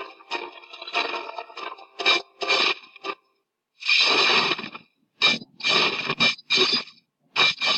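Sword slashes and magic blasts whoosh and clash in bursts.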